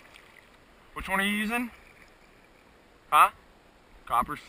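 A man calls out across open water.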